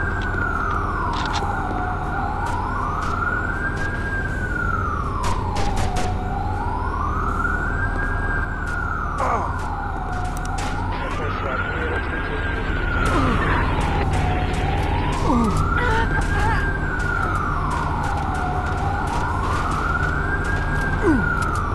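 A rifle fires in short bursts of gunshots.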